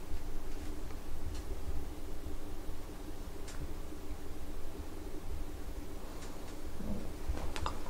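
A hand rubs and rustles a soft bed cover close by.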